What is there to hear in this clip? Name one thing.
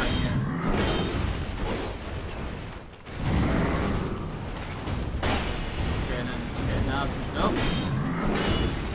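A heavy blade swings and clashes in combat.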